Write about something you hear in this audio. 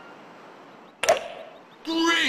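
A golf club strikes a ball with a sharp whack.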